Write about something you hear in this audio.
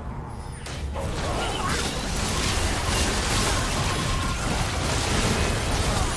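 Game sound effects of spells and attacks crackle and whoosh.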